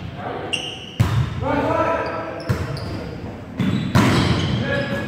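A volleyball is struck with sharp slaps in an echoing gym.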